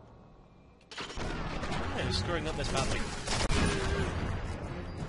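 A large explosion booms and rumbles.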